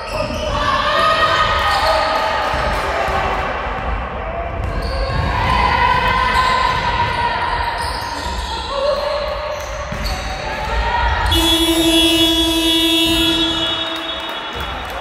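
Young girls shout and call out to each other in an echoing hall.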